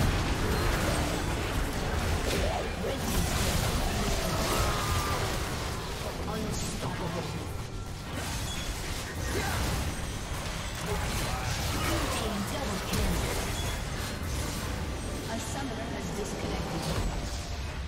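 Spells and attacks crackle and boom in a game battle.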